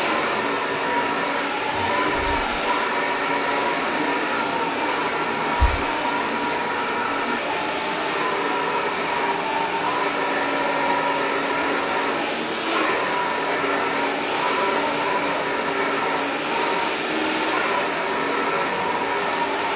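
A hair dryer blows with a steady whirring hum.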